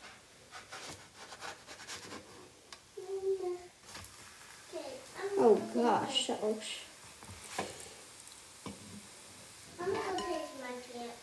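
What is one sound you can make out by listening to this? A metal spatula scrapes and taps on a hot griddle.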